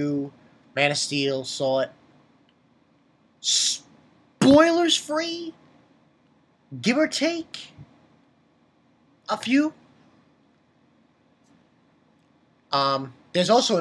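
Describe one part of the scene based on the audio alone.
A young man speaks animatedly in bursts, close to a microphone.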